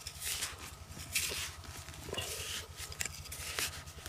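Clumps of soil fall and patter onto the ground.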